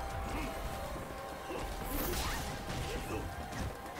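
Video game sound effects whoosh and thud during a fight.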